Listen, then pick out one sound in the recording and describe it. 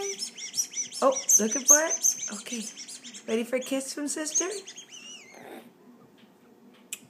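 A woman talks softly to a baby close by.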